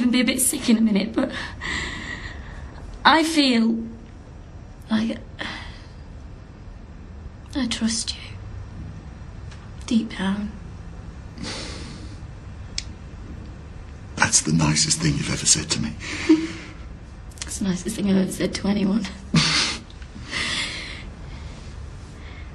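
A woman speaks quietly and tearfully, close by.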